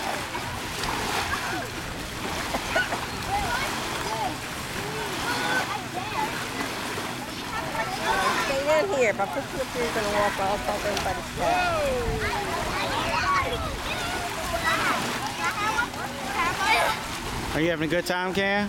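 Children talk and shout with animation close by.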